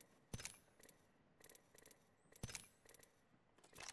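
Menu items click and chime as they are selected.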